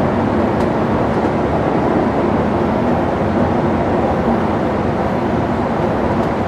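Tyres roar steadily on an asphalt road.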